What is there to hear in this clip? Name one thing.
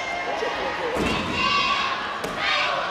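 A gymnast's feet thump hard on a springboard.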